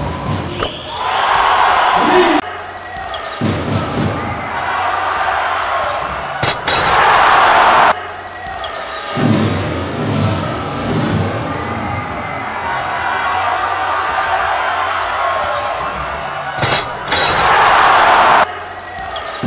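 A crowd cheers and roars in a large echoing hall.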